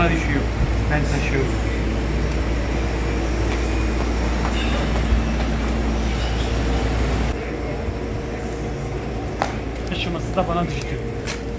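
A middle-aged man speaks casually, close by.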